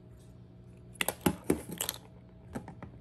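Eggshell pieces click and tap against glass.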